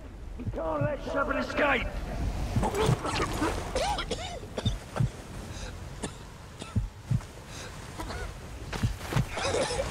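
Gloved hands slap and squelch through wet mud.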